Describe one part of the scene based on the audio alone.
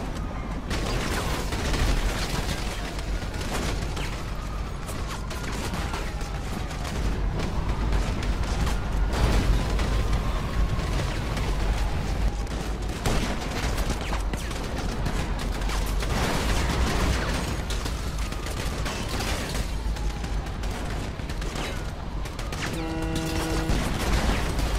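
Police sirens wail.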